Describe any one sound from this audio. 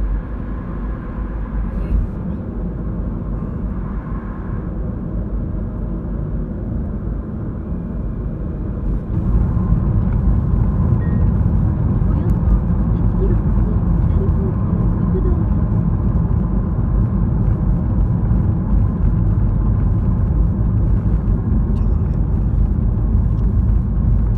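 Tyres roll on the road surface with a steady rumble.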